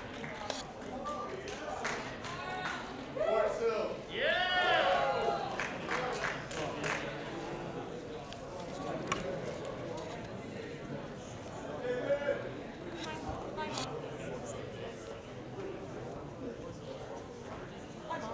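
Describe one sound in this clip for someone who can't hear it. Men talk and murmur nearby in an echoing room.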